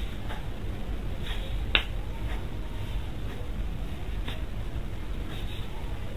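A selfie stick clicks as it is extended.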